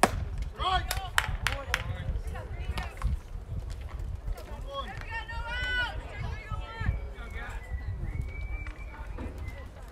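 Young men shout from across the field.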